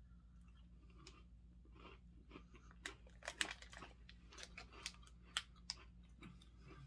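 A woman chews a crunchy snack with crackling bites.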